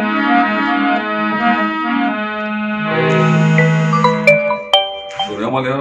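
A harmonium plays a melody up close.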